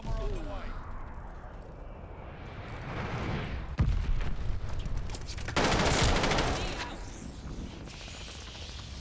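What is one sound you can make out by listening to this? A young man speaks into a headset microphone.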